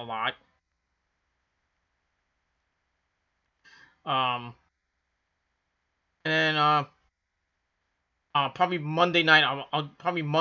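A man speaks close to a microphone in short bursts with pauses between.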